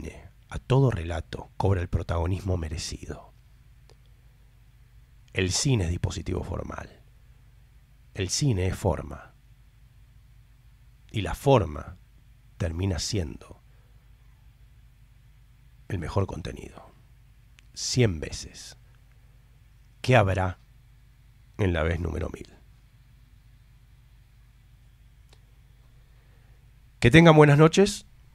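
A middle-aged man speaks calmly into a close microphone, in short phrases with pauses.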